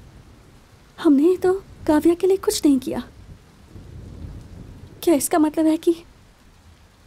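A young man speaks quietly, close by.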